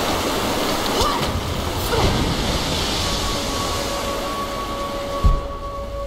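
A waterfall pours and rushes nearby.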